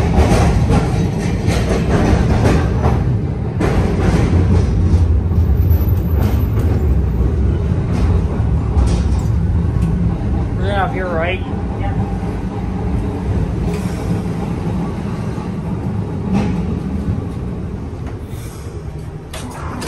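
A streetcar rumbles and rattles along its tracks.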